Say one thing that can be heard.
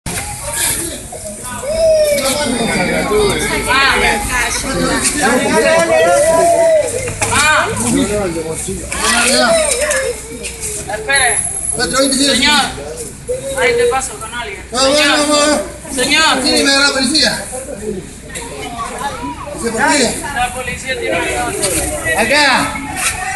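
Several men shout and talk excitedly close by.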